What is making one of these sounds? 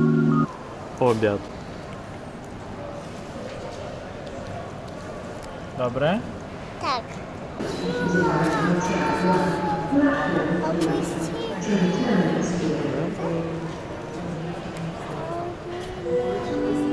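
A young girl squeals and babbles close by.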